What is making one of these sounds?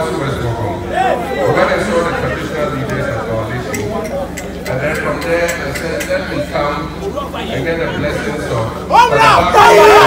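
A man speaks forcefully into a microphone over a loudspeaker outdoors.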